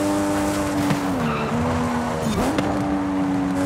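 A race car engine dips in pitch as the car brakes for a bend.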